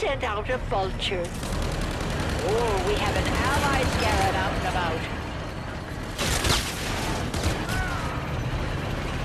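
Rapid gunfire rattles close by.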